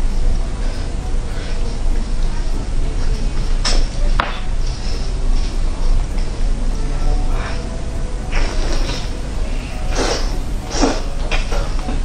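A young woman chews and smacks food close to a microphone.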